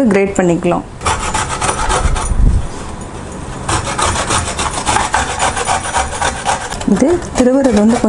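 Garlic rasps against a metal grater in quick, steady strokes.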